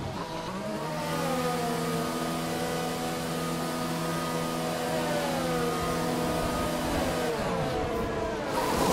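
A racing car engine hums steadily at a held speed.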